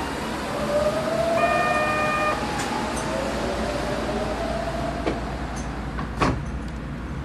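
A train rumbles steadily along the tracks toward the listener.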